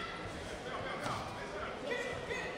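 A kick thuds against a padded body protector.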